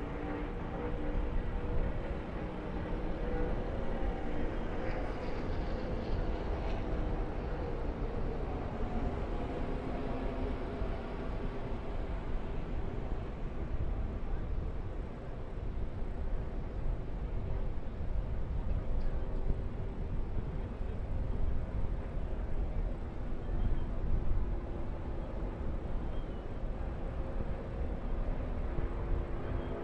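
Race car engines roar steadily from a distance as a pack of cars races by.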